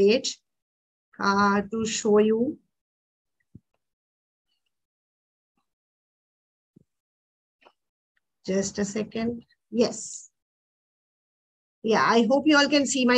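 A woman speaks calmly through an online call, in short bursts.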